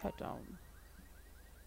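A man speaks briefly and calmly.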